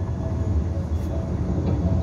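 A bus passes close by.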